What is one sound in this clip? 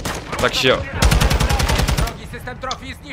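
A rapid burst of gunfire rattles.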